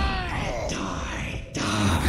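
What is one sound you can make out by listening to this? Rapid gunfire rattles in a game.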